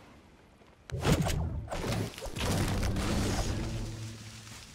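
A pickaxe strikes wood with sharp, repeated knocks.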